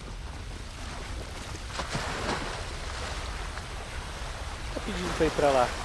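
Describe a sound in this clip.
A character splashes through water.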